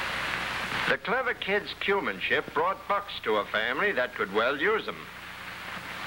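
A young boy speaks clearly.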